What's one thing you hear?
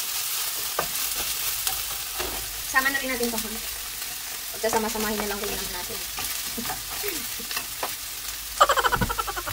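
A wooden spatula scrapes and knocks against a frying pan.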